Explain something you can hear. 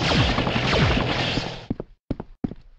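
A laser beam fires with a loud hiss.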